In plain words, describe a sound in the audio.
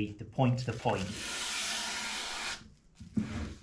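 A hand plane shaves along a wooden board with a rasping hiss.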